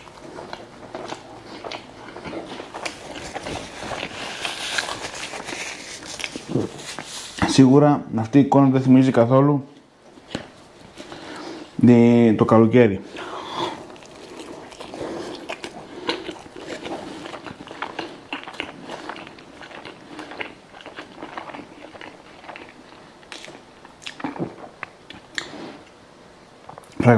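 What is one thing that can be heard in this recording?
A man chews food noisily close by.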